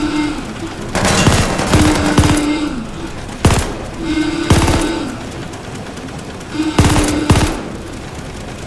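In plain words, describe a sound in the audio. A rifle fires loud bursts of shots that echo in an enclosed metal space.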